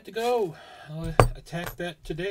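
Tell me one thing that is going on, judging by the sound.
A metal padlock knocks down onto a table.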